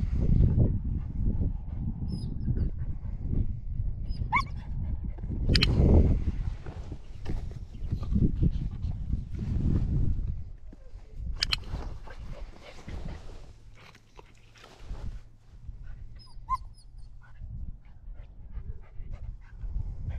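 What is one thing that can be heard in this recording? A man talks calmly to a puppy close by.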